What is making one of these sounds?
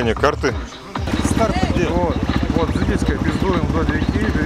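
A motorbike engine idles with a steady putter.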